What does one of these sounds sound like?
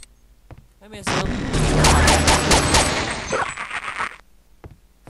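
A creature bursts with a loud crackling blast.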